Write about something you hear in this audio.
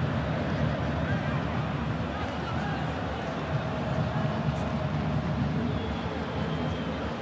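A large crowd murmurs and chants steadily in an open stadium.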